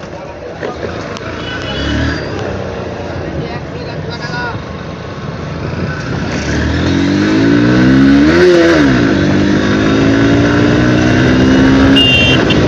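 A motorcycle engine hums and revs up as the bike speeds along a road.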